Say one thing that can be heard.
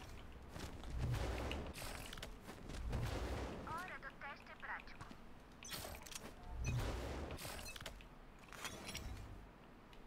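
Game effects whoosh and crackle as a fireball is charged.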